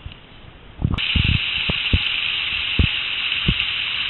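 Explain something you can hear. A stream rushes over rocks.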